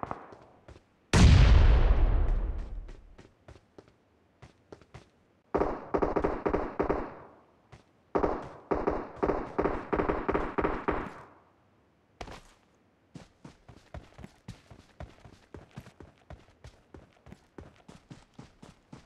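Footsteps run quickly and steadily over hard ground.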